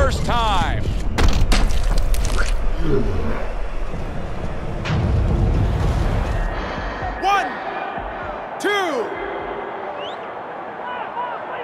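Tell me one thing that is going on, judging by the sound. A crowd roars in a large arena.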